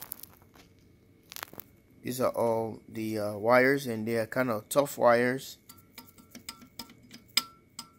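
Fingers click softly against a small metal clip.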